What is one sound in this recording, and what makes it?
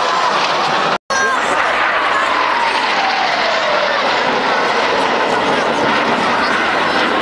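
Jet trainers roar past, their pitch falling as they go by.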